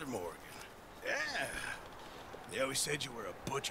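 A second man answers calmly.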